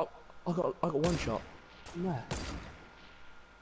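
A sniper rifle fires two loud single shots.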